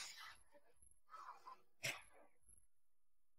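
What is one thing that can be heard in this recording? Cloth rustles softly.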